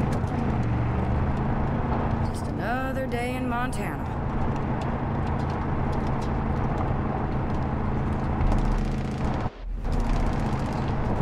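A car engine hums while driving.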